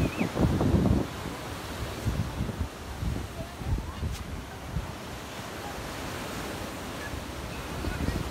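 Palm fronds rustle in the wind.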